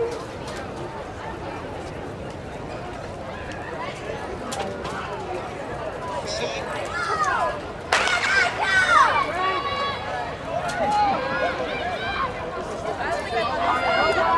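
A crowd of young people chatters and calls out outdoors, with nearby voices loudest.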